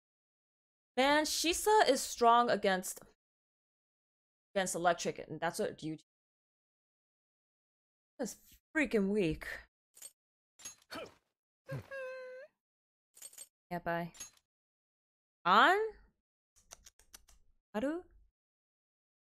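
A young woman talks with animation into a microphone, in short bursts.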